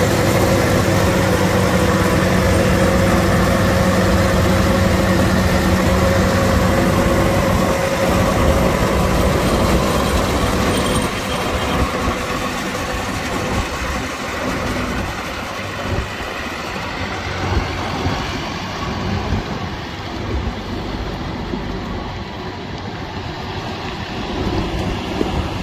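A large diesel engine idles with a steady rumbling hum.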